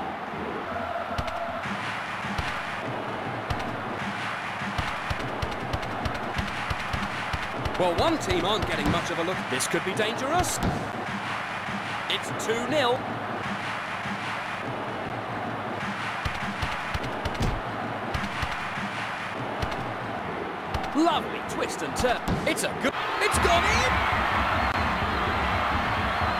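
A crowd roars steadily in a large stadium.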